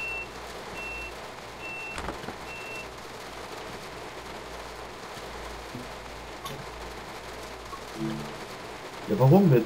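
A windscreen wiper sweeps back and forth.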